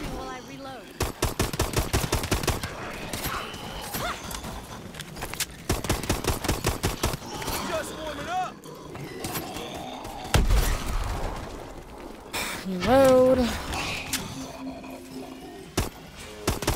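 A pistol fires rapid bursts of shots.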